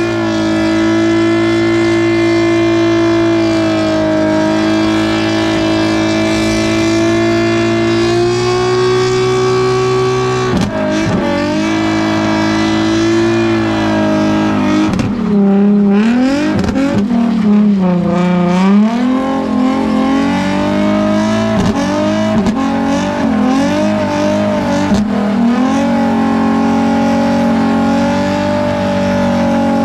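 A car engine roars loudly at high revs, its pitch rising and falling.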